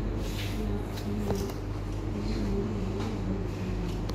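Scissors snip through hair close by.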